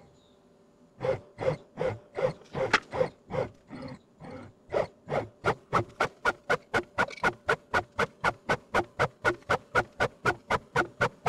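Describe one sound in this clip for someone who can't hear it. A machine hums in quick, evenly spaced pulses that keep on.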